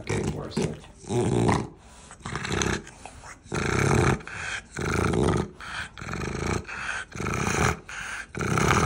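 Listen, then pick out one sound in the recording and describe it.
A dog pants loudly with harsh, snorting breaths.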